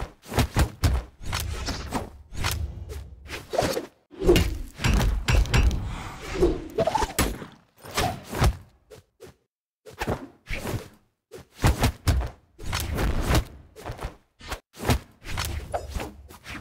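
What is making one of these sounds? Weapons swish and thud in quick bursts during a fast fight.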